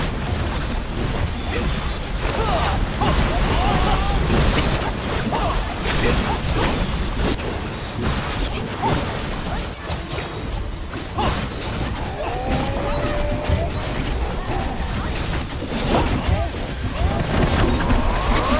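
Magic spells crackle and burst with loud impacts in a busy battle.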